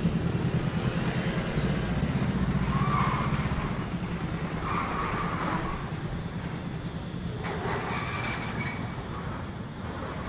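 Motorbike engines idle and rev nearby.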